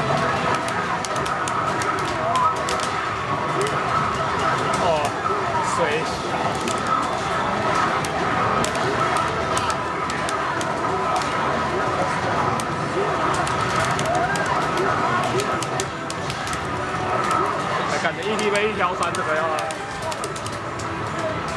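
Punches and kicks land with sharp hits in the game.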